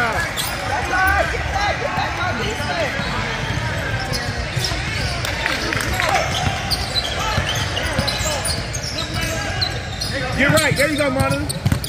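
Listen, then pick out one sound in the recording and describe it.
Players and onlookers call out and chatter loudly.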